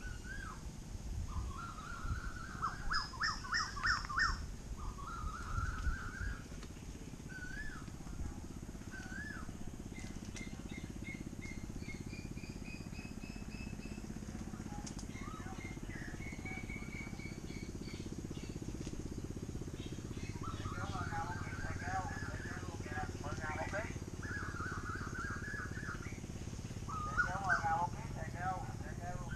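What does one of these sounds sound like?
Birds sing and chirp in the trees outdoors.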